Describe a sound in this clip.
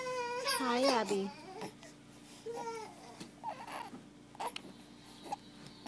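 A newborn baby makes soft cooing sounds close by.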